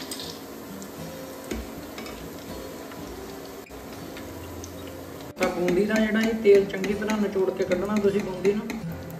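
Hot oil sizzles and crackles softly in a pan.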